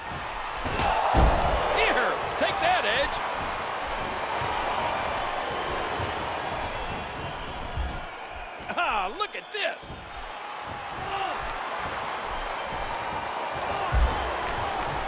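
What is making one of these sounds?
A body thuds onto a wrestling ring mat.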